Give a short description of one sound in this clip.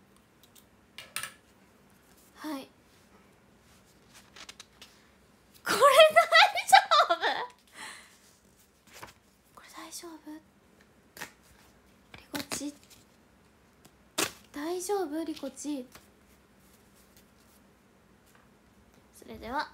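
A young woman talks softly and close up, with pauses.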